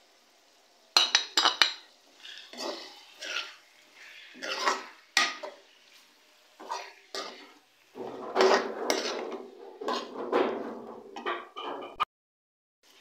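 A metal spoon scrapes and clinks against a metal bowl.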